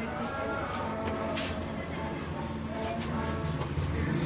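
A cloth rubs and squeaks against a window pane.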